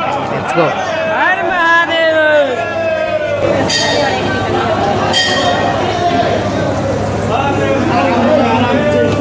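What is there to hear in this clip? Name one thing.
Several people murmur quietly.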